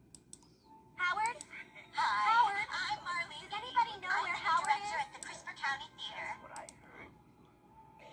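Cartoon hyenas cackle and laugh through laptop speakers.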